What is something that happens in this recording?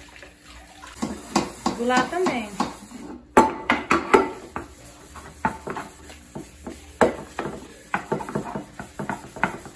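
A sponge scrubs a metal pot with squeaky rubbing.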